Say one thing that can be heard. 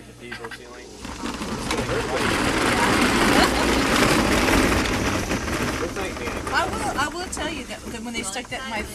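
Several women laugh loudly close by.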